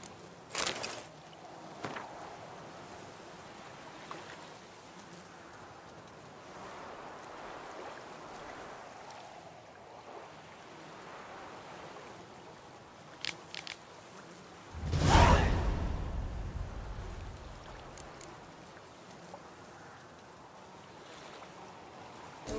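Water laps gently against a shore.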